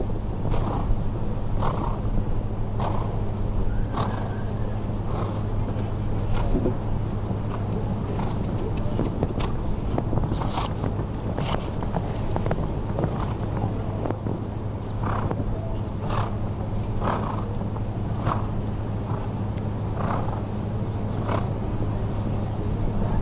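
A horse canters on sand with muffled hoofbeats.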